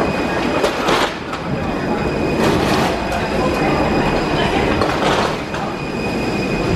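Footsteps tap along a narrow passage.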